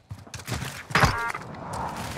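A bolt-action rifle fires a single shot.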